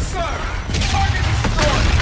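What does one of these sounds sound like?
A rocket whooshes upward.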